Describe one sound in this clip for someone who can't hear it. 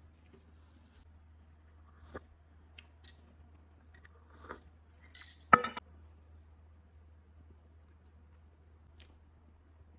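A woman eats with soft chewing and smacking sounds.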